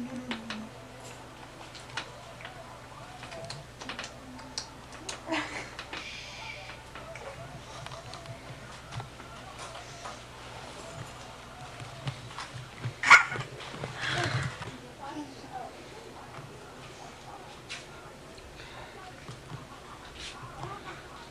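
A baby coos and babbles.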